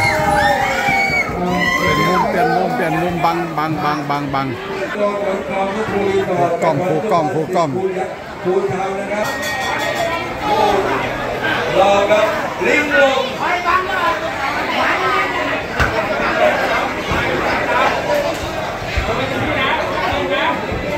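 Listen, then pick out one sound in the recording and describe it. A crowd of people talks and calls out loudly nearby.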